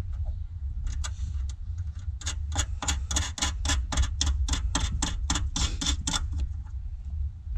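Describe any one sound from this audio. Small metal parts click and rattle rapidly under working hands.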